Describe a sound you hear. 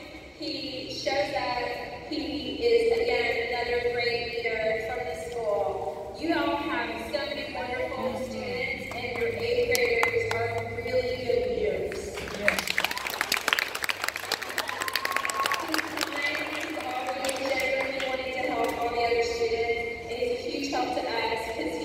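A group of children sing together.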